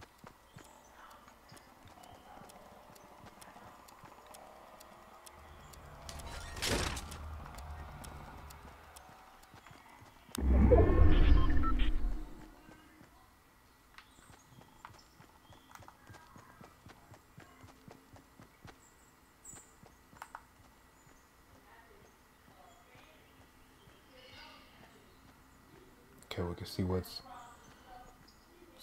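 Footsteps patter quickly as a game character runs.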